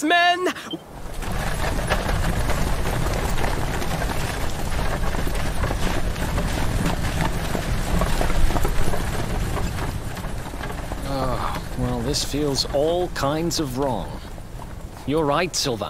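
A horse-drawn wagon rumbles along on wooden wheels.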